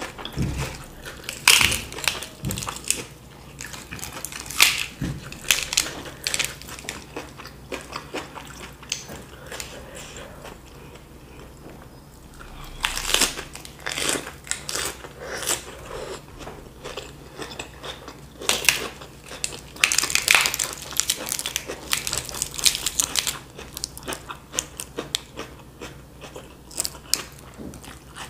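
Crisp lettuce leaves crinkle and rustle close by as hands fold them.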